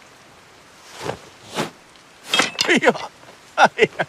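An arrow clatters into a metal pot.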